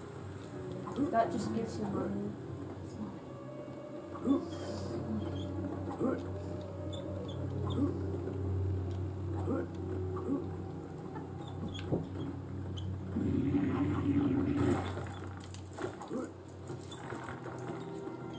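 Short chiming pickups tinkle now and then.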